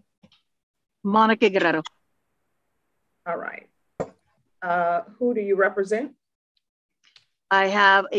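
A woman speaks over an online call in short phrases.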